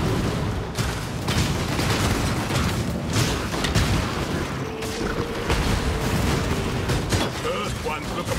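Spell blasts crackle and burst in a rapid battle.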